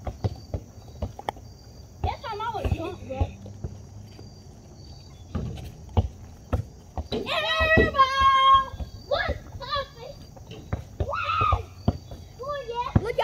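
A basketball bounces on the ground.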